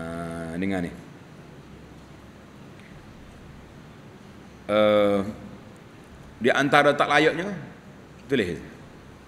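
An elderly man speaks calmly into a close microphone, in drawn-out phrases with long pauses.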